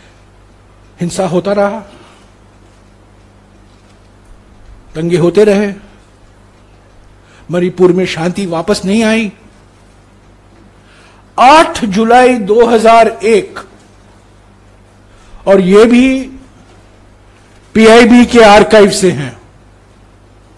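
An elderly man speaks with emphasis into a microphone, in short bursts with pauses.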